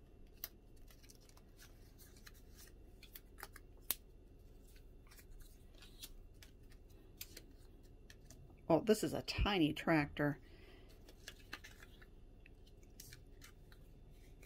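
Paper cards rustle and tap softly as they are handled and laid down.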